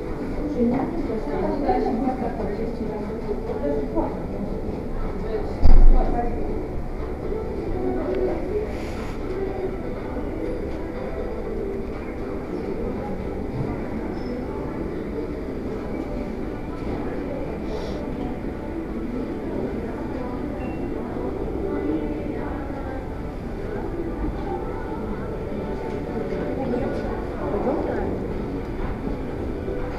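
Voices of shoppers murmur indistinctly in a large indoor space.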